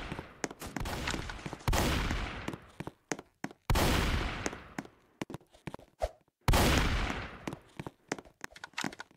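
Quick footsteps thud across hollow wooden boards.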